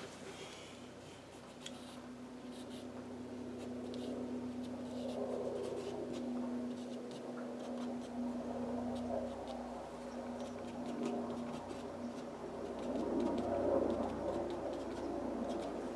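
A brush dabs and scrapes softly on paper.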